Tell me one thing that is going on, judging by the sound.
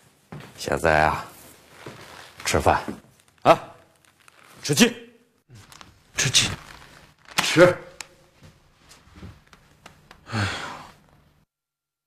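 A middle-aged man speaks close by in short, lively phrases.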